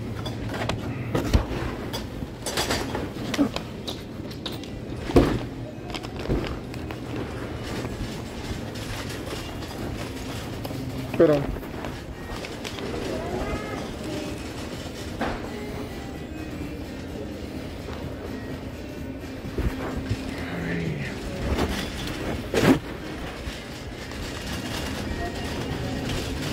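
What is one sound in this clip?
A shopping cart rattles and clatters as it rolls.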